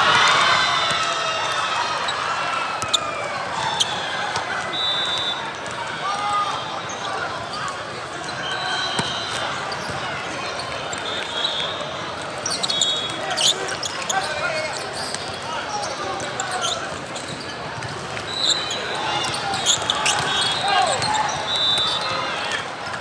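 Shoes squeak sharply on a hard court.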